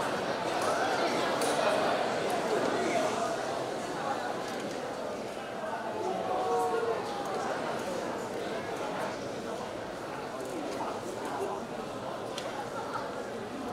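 A piano plays a flowing melody in a large hall.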